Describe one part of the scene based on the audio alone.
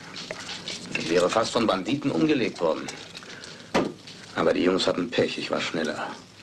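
A man speaks in a low, serious voice nearby.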